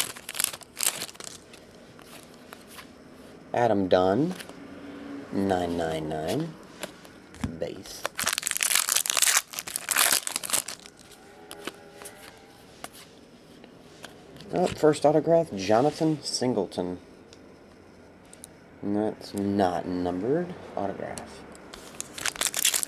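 Cards rustle and slide as they are shuffled by hand.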